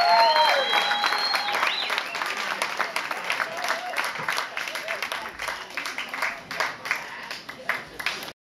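A live band plays electric guitar in a reverberant room.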